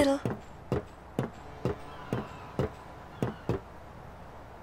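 Footsteps clack on a metal deck.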